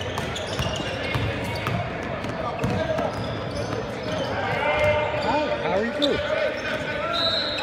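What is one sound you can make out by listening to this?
A basketball is dribbled on a gym floor.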